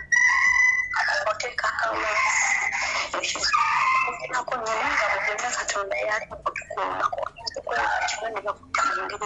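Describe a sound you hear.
A young woman speaks with animation over a phone line.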